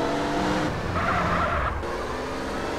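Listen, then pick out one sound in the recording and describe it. Tyres screech as a car swerves past another car.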